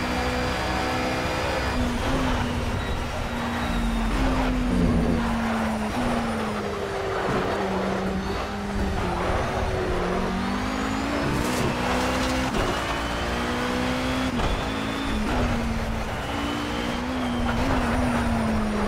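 A racing car engine roars steadily, rising and falling in pitch as it shifts gears.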